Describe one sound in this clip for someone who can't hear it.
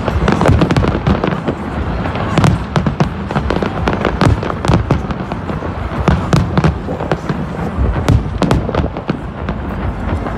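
Fireworks bang and crackle overhead in rapid bursts.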